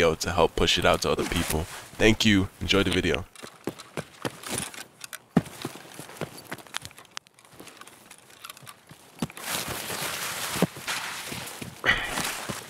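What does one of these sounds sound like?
Footsteps rustle through grass and leafy bushes.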